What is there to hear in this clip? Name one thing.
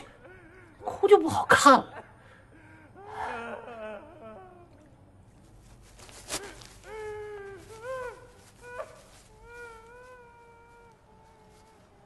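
A man speaks with emotion close by, his voice breaking.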